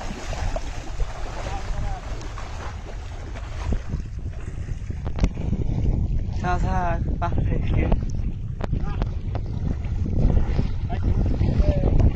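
Water swishes and trickles around a basket trap dipped in the water.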